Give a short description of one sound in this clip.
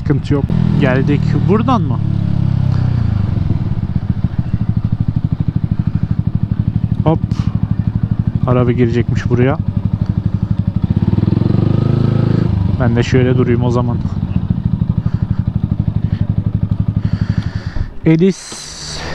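A motorcycle engine rumbles steadily up close, then cuts out.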